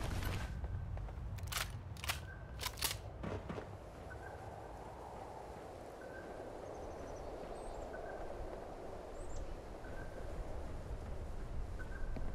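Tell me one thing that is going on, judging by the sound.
Footsteps clank on sheet metal.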